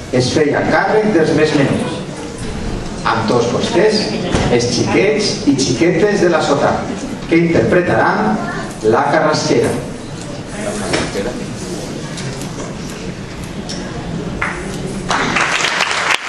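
A choir sings on stage in a hall.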